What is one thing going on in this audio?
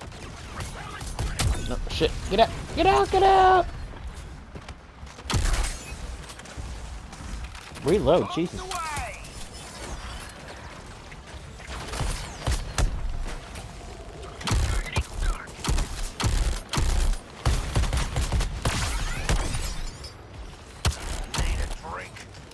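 Gunfire and blasts crack in rapid bursts.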